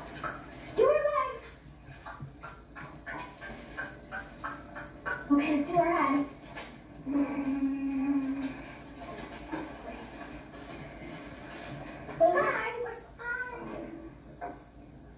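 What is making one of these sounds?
Children talk and shout excitedly, heard through a television speaker.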